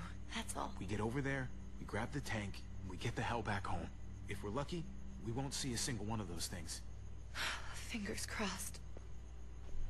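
A young man talks quietly, close by.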